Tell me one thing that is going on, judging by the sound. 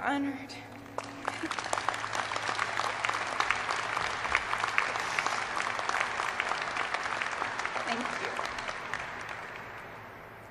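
A large audience applauds steadily, echoing in a large hall, then fades.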